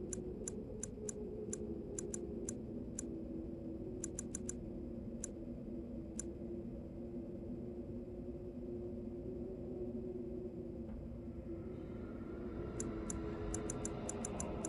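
Short, high menu clicks tick in quick bursts.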